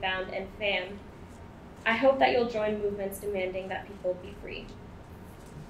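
A young woman speaks calmly into a microphone, heard through a loudspeaker in a room.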